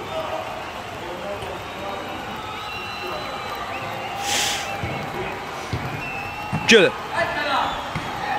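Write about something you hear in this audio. Young men shout to each other in an echoing hall.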